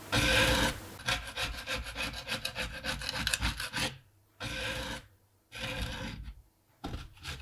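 A putty knife scrapes across a wooden guitar body in short strokes.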